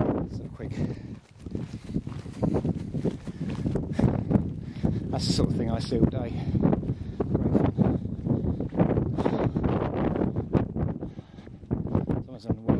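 Running footsteps crunch on dry, gravelly ground.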